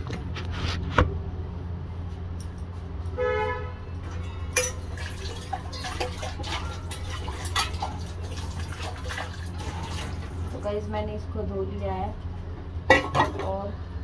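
Metal dishes clink and clatter.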